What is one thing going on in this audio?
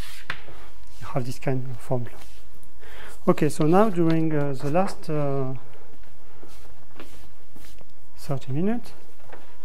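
A young man speaks calmly and briefly.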